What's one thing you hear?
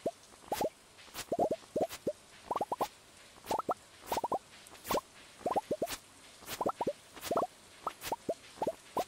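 Quick popping plucks repeat rapidly as crops are harvested.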